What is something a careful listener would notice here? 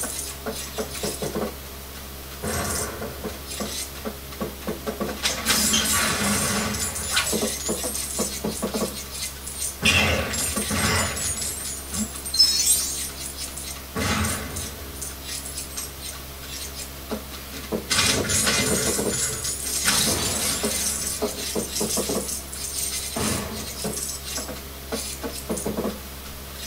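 Upbeat game music plays steadily from a television speaker.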